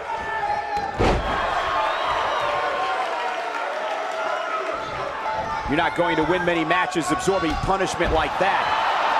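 A body slams heavily onto a wrestling ring mat with a loud thud.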